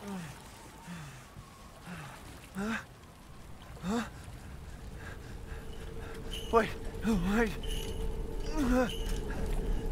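A man speaks into a microphone with short, excited exclamations.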